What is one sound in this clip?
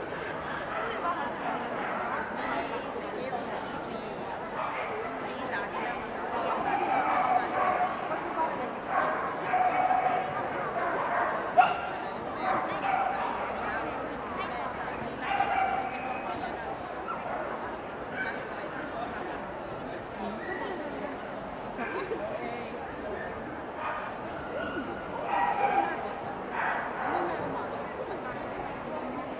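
A crowd of men and women chatters in the background of a large echoing hall.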